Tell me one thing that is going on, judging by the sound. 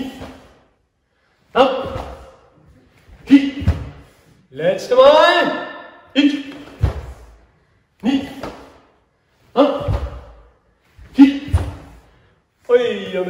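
A middle-aged man shouts short, sharp cries in an echoing hall.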